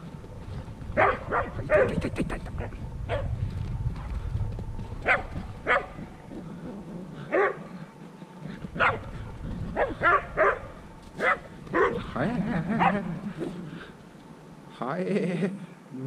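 Dogs bark excitedly outdoors.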